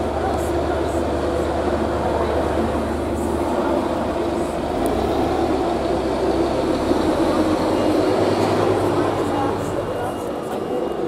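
A bus engine rumbles nearby.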